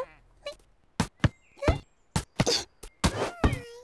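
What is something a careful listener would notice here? A rubber ball bounces on grass.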